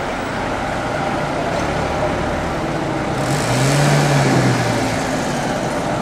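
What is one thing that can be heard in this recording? A tram rumbles closer along its rails.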